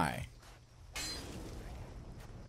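A sword slashes and strikes an enemy.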